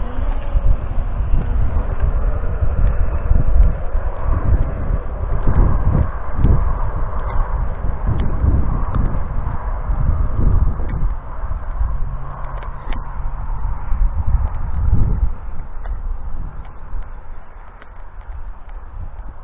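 Wind blows hard across the microphone outdoors, easing toward the end.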